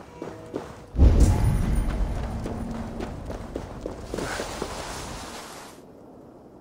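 A loud magical whoosh surges and then fades.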